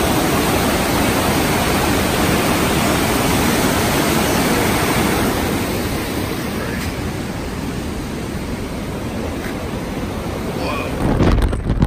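A river rushes loudly over rapids.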